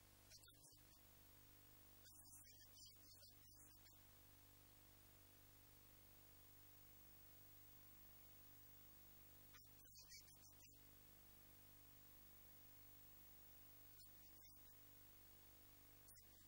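A man speaks into a microphone in short bursts, heard faintly through a loudspeaker.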